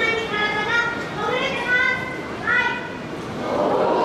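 A sea lion barks loudly several times.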